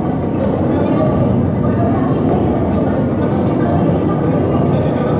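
Dense electronic music plays loudly through loudspeakers in a room that echoes.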